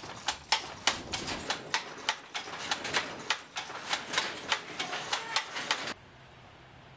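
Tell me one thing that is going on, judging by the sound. A wooden loom clacks in quick, rhythmic beats.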